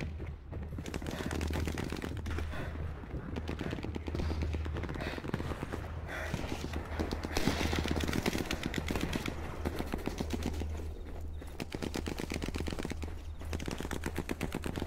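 Footsteps run quickly through dry grass.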